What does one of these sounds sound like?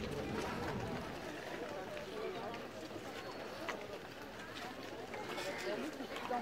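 A crowd of men and women murmurs and chatters outdoors.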